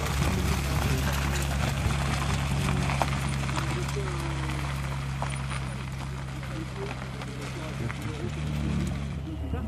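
Tyres crunch on gravel.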